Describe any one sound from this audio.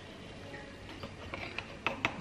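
A spoon scrapes and clinks inside a metal can.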